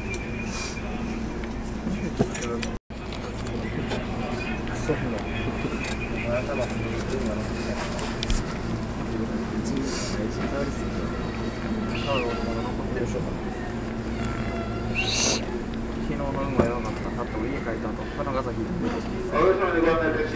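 Wheels click and clatter over rail joints.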